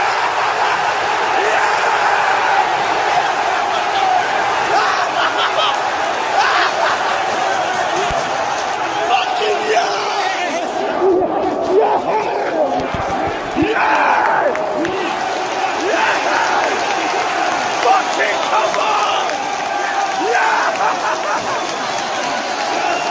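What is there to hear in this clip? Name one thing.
A large crowd of men cheers and chants loudly in an open stadium.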